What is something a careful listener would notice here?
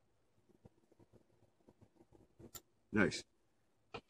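A small metal blade clicks down onto a hard stone.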